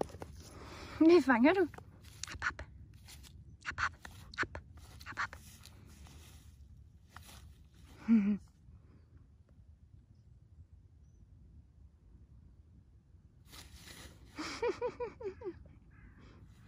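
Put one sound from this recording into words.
A dog whines in high, wavering yelps.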